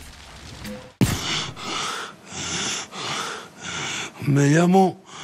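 A middle-aged man speaks dramatically, close by.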